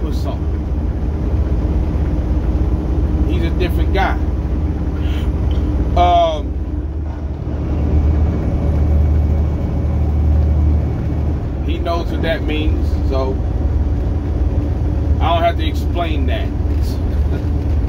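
A truck engine hums low and steady from inside the cab.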